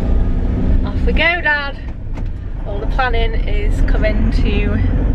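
A young woman talks cheerfully and close by.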